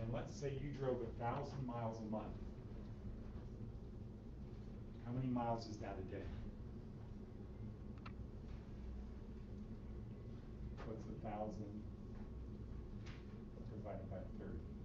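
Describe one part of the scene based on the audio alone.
A middle-aged man lectures calmly, heard through a distant microphone.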